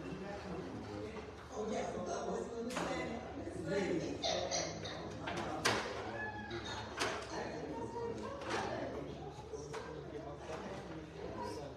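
A woman speaks calmly into a microphone through a loudspeaker in an echoing hall.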